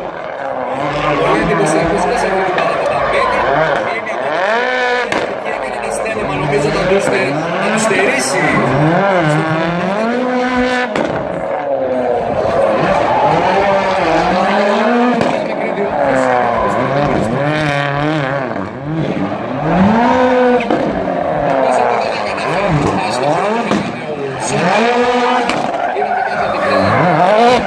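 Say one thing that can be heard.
A rally car engine revs hard, rising and falling in pitch again and again.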